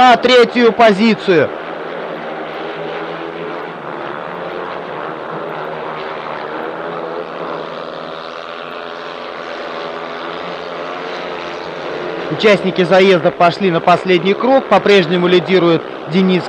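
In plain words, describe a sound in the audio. Motorcycle engines roar loudly.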